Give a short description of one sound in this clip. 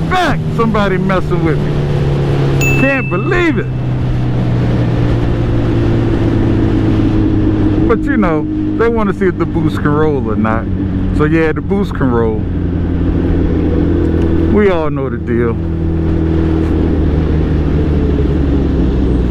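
An inline-four sport bike engine hums while cruising on a highway.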